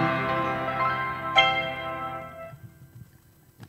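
A piano plays a held chord that rings out and fades.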